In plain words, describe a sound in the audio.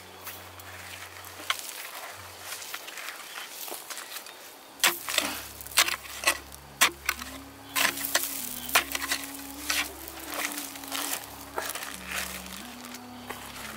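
Hands scrape loose dirt aside.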